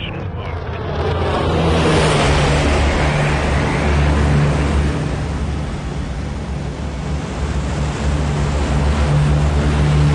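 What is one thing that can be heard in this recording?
A large propeller aircraft drones loudly overhead.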